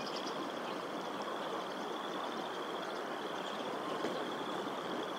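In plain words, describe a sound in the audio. Wind blows steadily through the trees outdoors.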